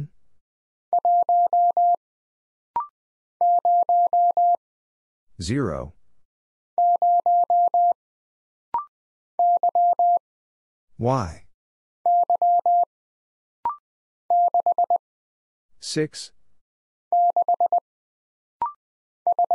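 A telegraph key beeps out quick bursts of Morse code.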